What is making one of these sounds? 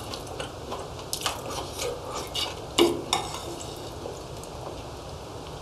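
A man chews wetly.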